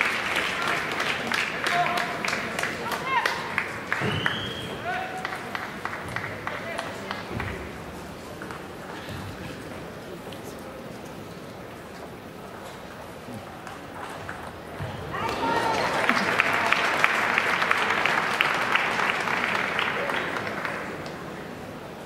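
A crowd claps and cheers in a large hall.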